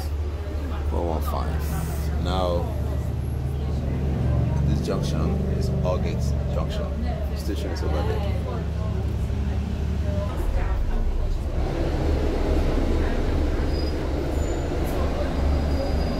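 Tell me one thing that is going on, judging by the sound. A vehicle engine rumbles low and steady while driving.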